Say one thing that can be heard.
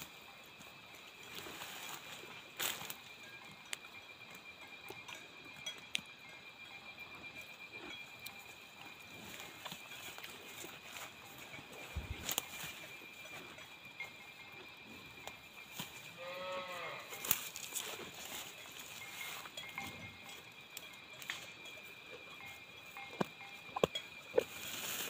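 A cow tears and munches grass close by.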